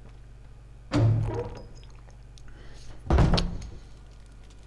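A wooden door thuds.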